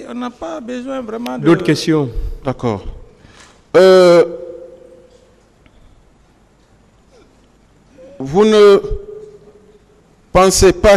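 A man speaks in a low voice nearby.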